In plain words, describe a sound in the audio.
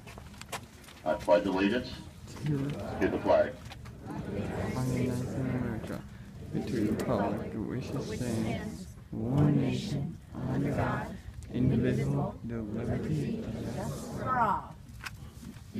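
A crowd sings slowly together outdoors.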